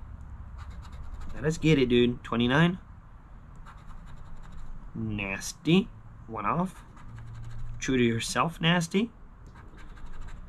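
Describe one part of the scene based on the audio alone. A coin scratches across a lottery ticket.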